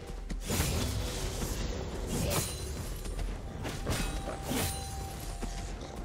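Game spell effects whoosh and crash in a fight.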